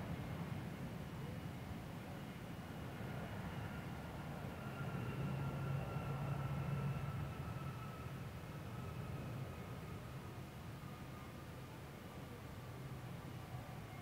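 Jet engines whine with a steady high tone as the airliner slows down.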